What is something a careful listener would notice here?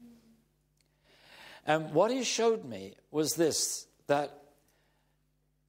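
An elderly man speaks calmly and clearly into a close microphone.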